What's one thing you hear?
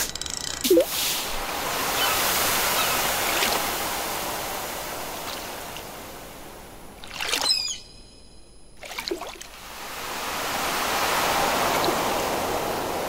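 Water ripples and waves wash gently.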